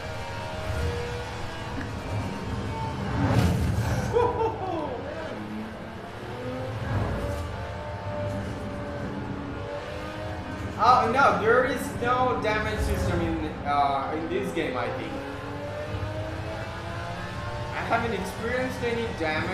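A sports car engine roars and revs as it speeds along a road.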